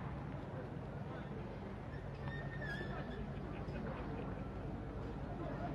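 Men talk and call out in a crowd outdoors.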